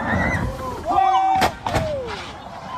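A car slams down onto a road.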